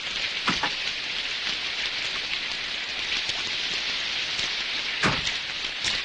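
Heavy rain pours down steadily.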